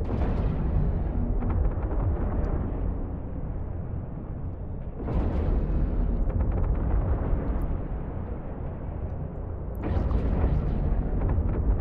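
Heavy cannon blasts boom at intervals.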